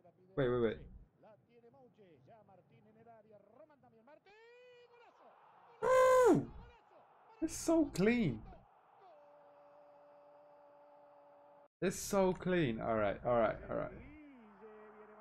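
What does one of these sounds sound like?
A young man talks and exclaims loudly into a close microphone.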